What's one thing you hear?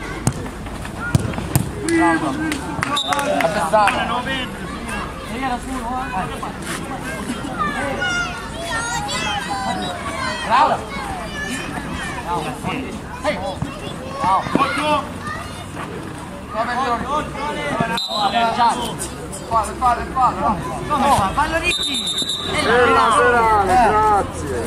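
A crowd of men shout and cheer nearby, outdoors.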